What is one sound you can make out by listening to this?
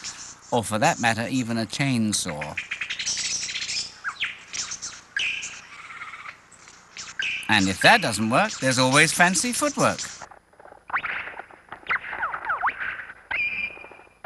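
A bird sings a loud, fast and varied song of trills, whistles and chattering calls nearby.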